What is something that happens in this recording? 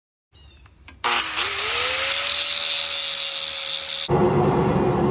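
An angle grinder whines up to speed and grinds metal.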